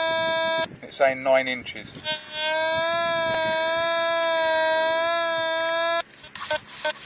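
A metal detector gives off steady electronic tones.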